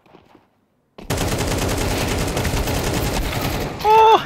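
Rifle shots ring out in quick bursts.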